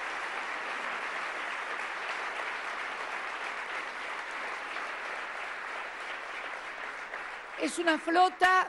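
A large crowd applauds in a hall.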